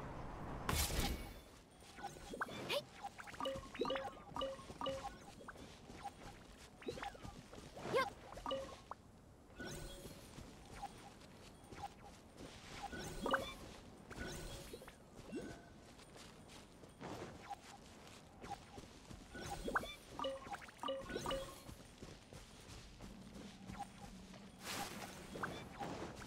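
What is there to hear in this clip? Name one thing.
Quick footsteps patter through grass.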